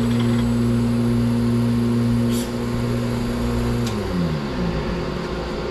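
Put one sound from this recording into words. A lathe motor hums steadily, then winds down and stops.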